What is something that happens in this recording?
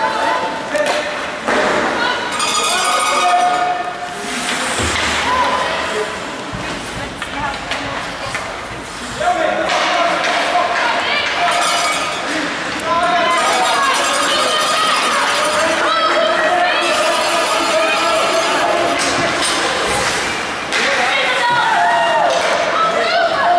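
Ice hockey skates scrape across ice in an echoing rink.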